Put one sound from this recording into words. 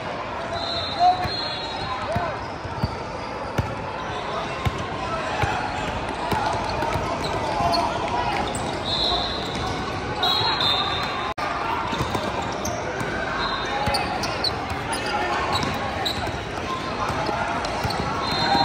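A basketball bounces on a hardwood court in a large echoing hall.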